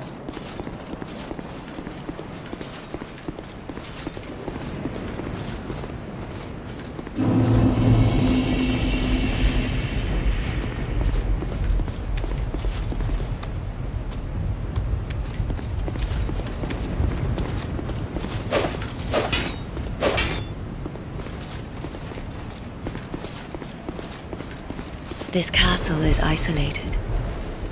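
Footsteps clatter quickly on stone steps.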